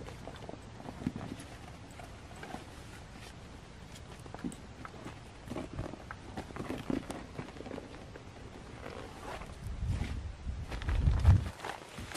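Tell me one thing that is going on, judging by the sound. Fabric rustles and crinkles as a man handles a bag.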